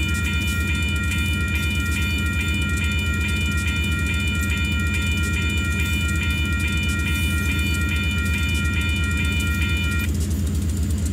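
A railway crossing bell rings rapidly.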